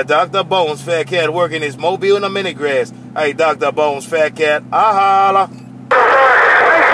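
A man talks through a crackly radio loudspeaker.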